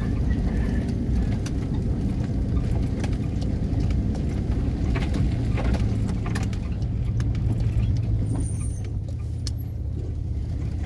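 Tyres crunch and rattle over a rough dirt road.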